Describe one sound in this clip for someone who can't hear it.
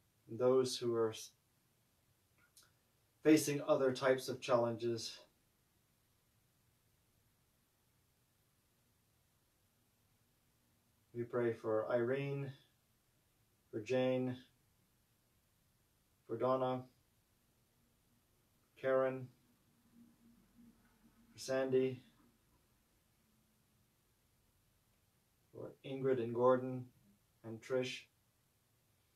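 A man speaks slowly and calmly into a close microphone, with long pauses.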